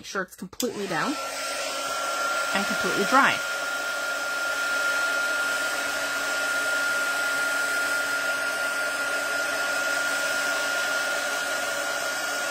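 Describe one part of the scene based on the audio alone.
A heat gun blows with a steady whirring hum.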